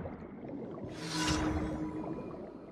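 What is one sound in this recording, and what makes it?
A bright game chime rings out.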